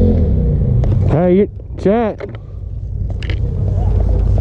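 A motorbike engine revs up sharply and roars.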